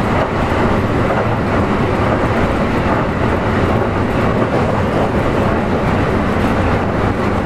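A train moves along a platform with a steady rumble and whine.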